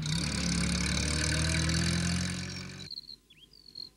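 A small van drives along.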